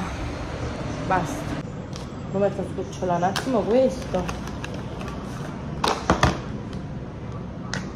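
Packaging crinkles and rustles in hands.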